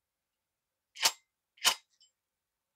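A metal tool clacks sharply twice.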